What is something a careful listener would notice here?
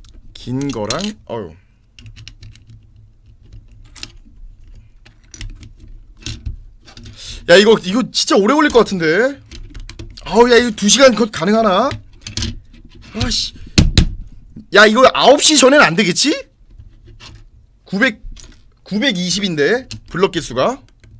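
Plastic toy bricks click and rattle together.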